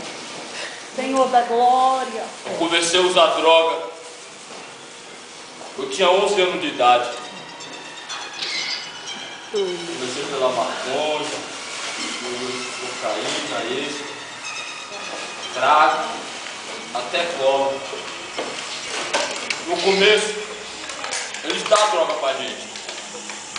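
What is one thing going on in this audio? A man speaks slowly and dramatically through a microphone and loudspeaker in an echoing room.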